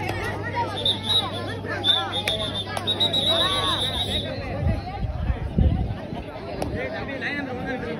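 A crowd of men and women chatters and shouts outdoors.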